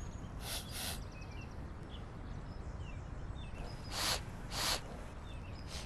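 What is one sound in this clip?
A man sniffs loudly through his nose, several times.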